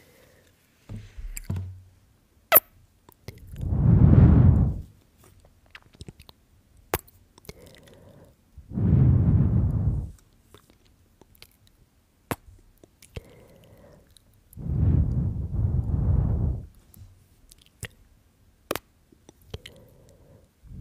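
Fingers tap and brush against a microphone.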